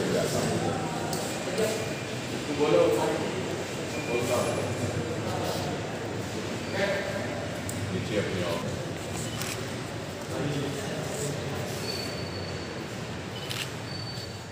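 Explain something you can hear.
Several men talk nearby with animation.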